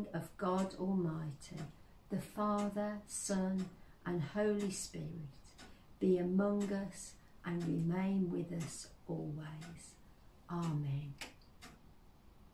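An older woman reads aloud calmly, close by.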